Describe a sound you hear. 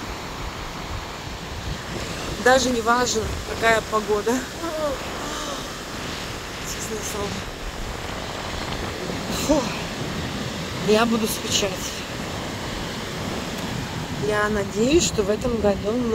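Waves wash steadily onto a beach.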